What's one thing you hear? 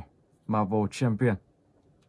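Fingers tap on a tablet's glass.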